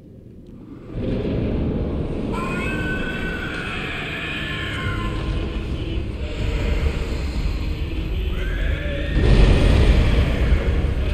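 A large fire roars and rumbles loudly.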